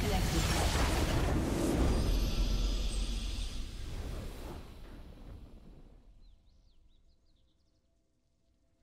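A triumphant game fanfare blares and slowly fades away.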